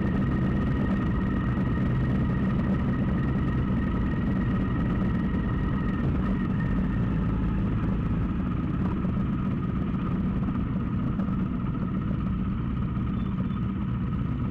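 Wind buffets loudly past the rider.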